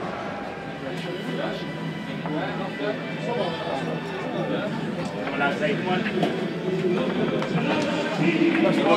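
Men chatter in an echoing tunnel.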